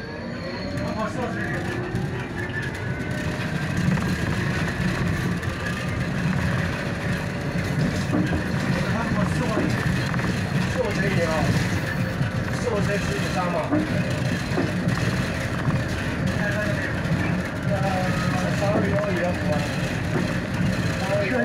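A vehicle's engine rumbles steadily from inside while driving.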